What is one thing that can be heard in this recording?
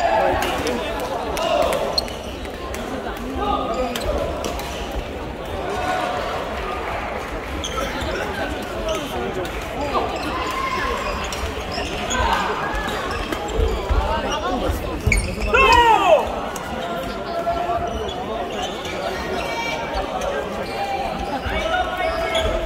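Many people talk and call out throughout a large echoing hall.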